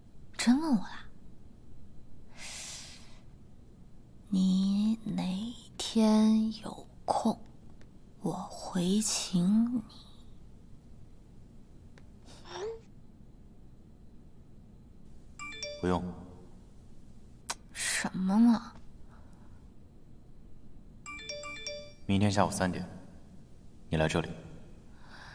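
A young woman speaks softly and calmly, close by.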